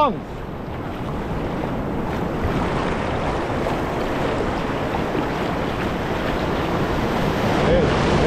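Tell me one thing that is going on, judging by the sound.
A large fish thrashes and splashes in shallow water.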